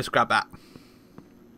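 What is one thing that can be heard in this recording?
A young man speaks briefly into a nearby microphone.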